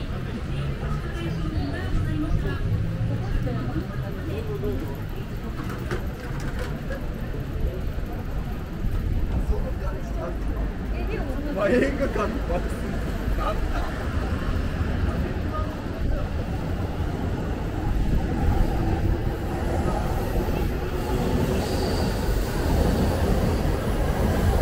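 Footsteps tap on a pavement outdoors.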